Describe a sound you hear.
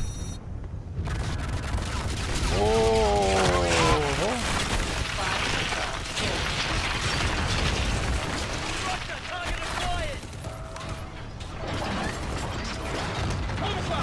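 Gunfire and blasts crackle loudly in a battle.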